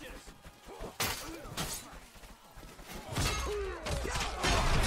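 Swords clash and strike in a fight.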